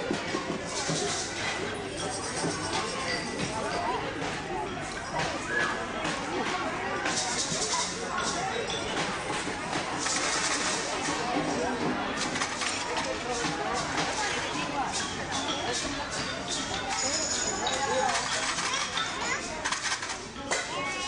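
A crowd of adults and children chatters in a large echoing hall.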